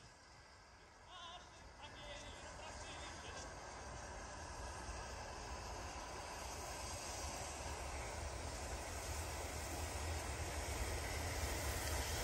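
A train approaches in the distance, its rumble growing steadily louder.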